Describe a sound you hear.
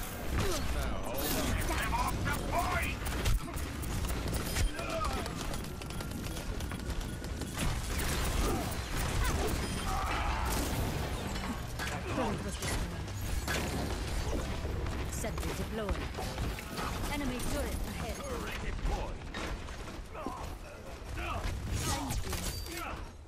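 Video game energy weapons fire and crackle in bursts.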